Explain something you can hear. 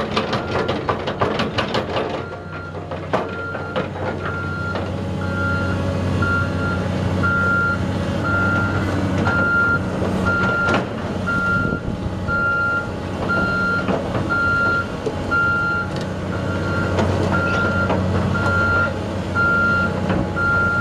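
A large diesel engine rumbles steadily.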